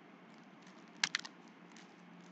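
A trading card's plastic sleeve crinkles and clicks as it is handled.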